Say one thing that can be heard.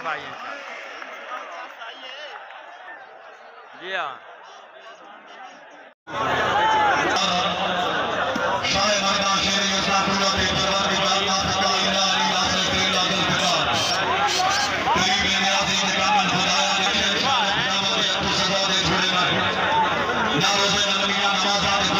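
A large crowd murmurs and cheers outdoors.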